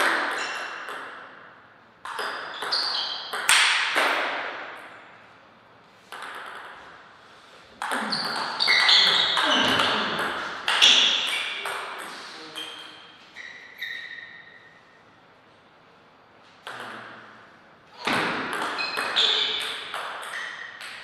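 A table tennis ball clicks sharply back and forth off paddles and the table in an echoing hall.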